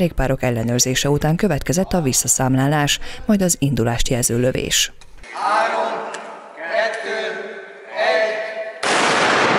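A man speaks loudly to a group outdoors.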